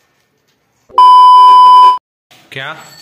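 A steady high test beep sounds, then stops abruptly.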